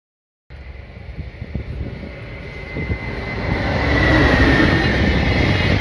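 Freight wagon wheels clatter over rail joints.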